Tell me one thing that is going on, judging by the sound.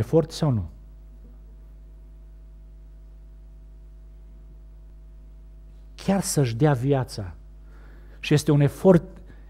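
A middle-aged man speaks with animation into a microphone, with long pauses.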